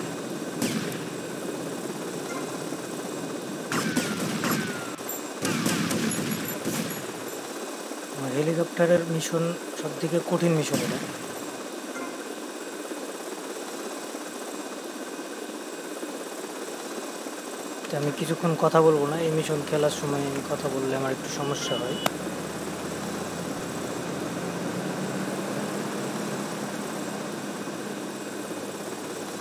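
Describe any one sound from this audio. A toy helicopter's motor whirs steadily.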